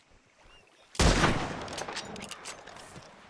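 A rifle fires once with a loud bang that echoes away.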